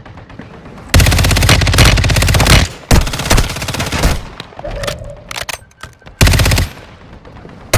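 Automatic rifle fire rattles in rapid bursts in a video game.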